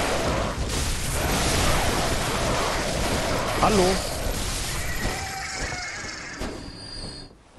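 A blade slashes and strikes with wet, heavy hits.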